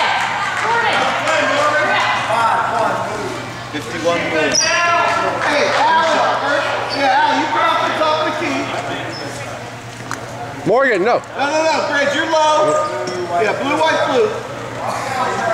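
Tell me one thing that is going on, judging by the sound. A woman coach shouts instructions nearby.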